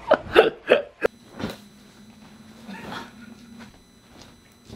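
A heap of clothes drops onto a bed with a soft rustle.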